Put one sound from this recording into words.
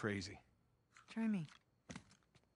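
A young woman answers calmly, close by.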